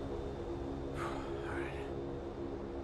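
A man sighs wearily close by.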